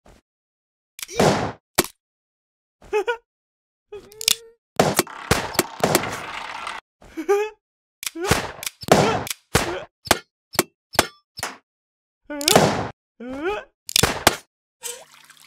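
Toy gun shots pop in quick bursts.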